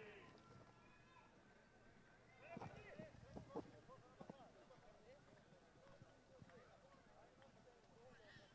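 Horses gallop across turf in the distance, hooves thudding.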